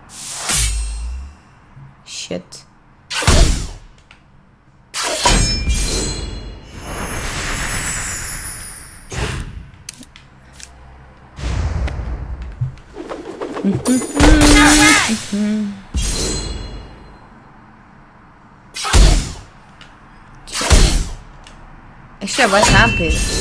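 Game sound effects of magic blasts burst out in short bursts.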